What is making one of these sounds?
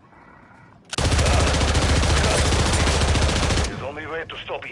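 Automatic gunfire rattles in long, rapid bursts.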